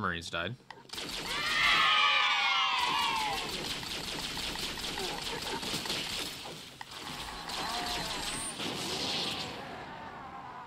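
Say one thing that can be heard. A weapon fires rapid, buzzing electric shots.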